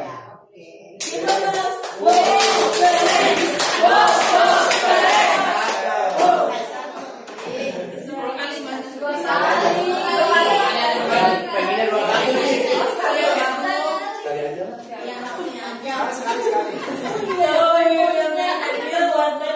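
Several people in a group talk at once with animation.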